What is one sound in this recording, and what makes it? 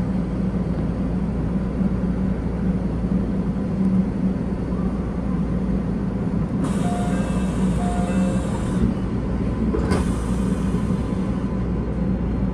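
A train rumbles and hums steadily as it runs along the track.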